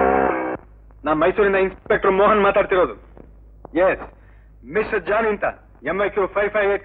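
A man speaks into a telephone with urgency.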